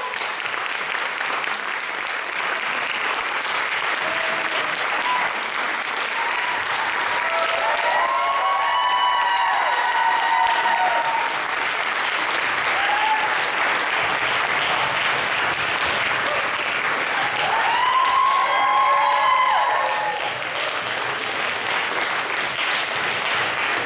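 An audience applauds steadily in an echoing hall.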